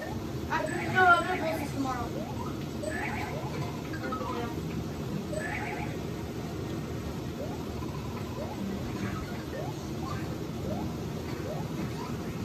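Short rising game sound effects chirp again and again through a television speaker.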